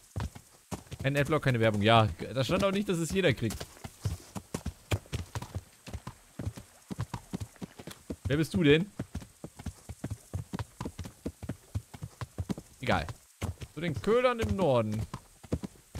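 A man talks with animation close to a headset microphone.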